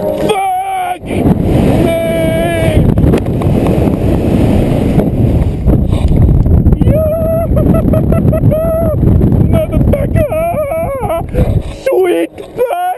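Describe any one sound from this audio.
Wind roars loudly past a microphone.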